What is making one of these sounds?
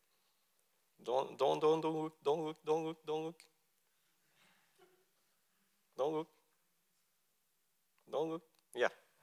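A man speaks through a microphone, presenting in short phrases with pauses.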